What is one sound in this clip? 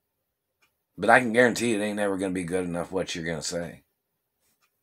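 A middle-aged man speaks calmly and close up.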